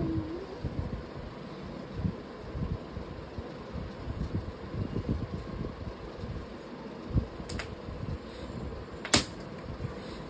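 Clothes rustle and thump as a toddler pulls them from shelves.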